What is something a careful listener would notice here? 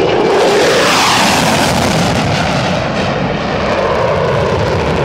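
Afterburner thunder rumbles and crackles as the jet climbs away.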